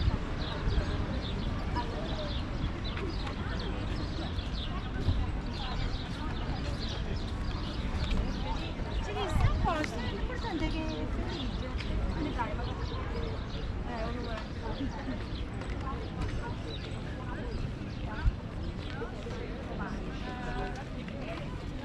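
Men and women talk nearby in a lively outdoor crowd.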